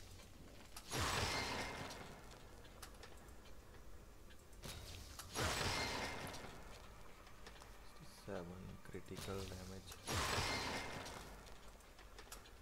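A game menu plays a loud whooshing chime when an upgrade is bought.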